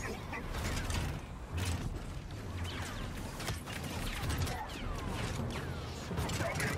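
Blaster shots fire and zap repeatedly.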